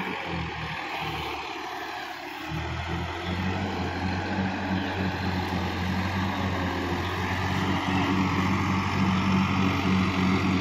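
Mud and water churn and splash under tractor wheels.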